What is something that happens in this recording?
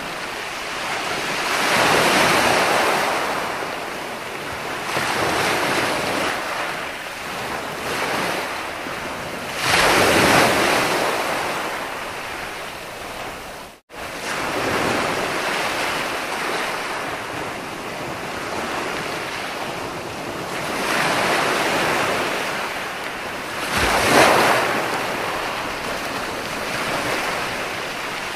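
Foamy surf washes up the sand and hisses.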